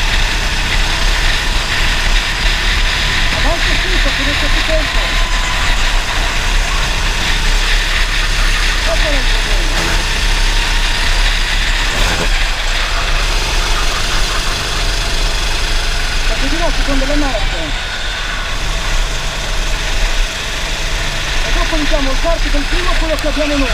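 A racing kart engine runs at full throttle, heard from the driver's seat.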